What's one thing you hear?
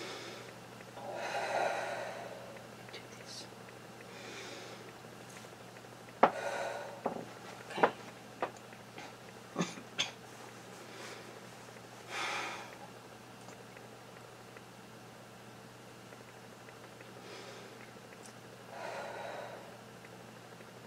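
A woman speaks quietly in short bursts close to a microphone.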